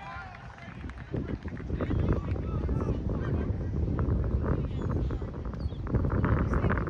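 A crowd of people chatters and calls out in the distance outdoors.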